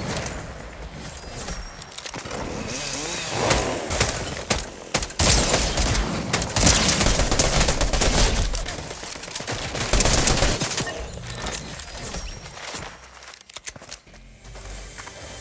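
Footsteps run quickly over dirt and wooden boards.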